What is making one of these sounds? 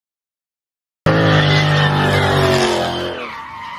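A muscle car engine revs loudly.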